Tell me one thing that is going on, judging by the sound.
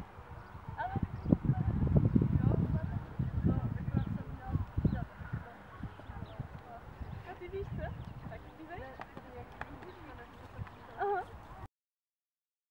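A woman speaks outdoors, close by.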